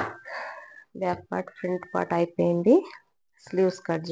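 Cloth rustles as it is lifted and moved.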